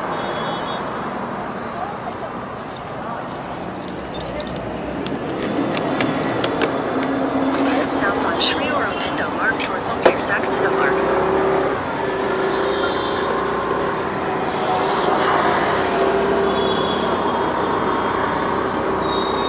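A scooter engine hums and revs.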